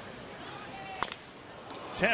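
A baseball bat cracks against a ball.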